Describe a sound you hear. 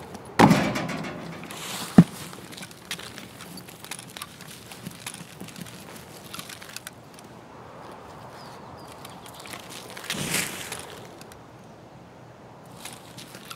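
Footsteps crunch steadily on grass and gravel.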